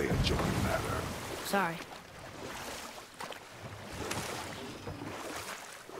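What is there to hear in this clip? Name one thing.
Oars splash and dip in the water.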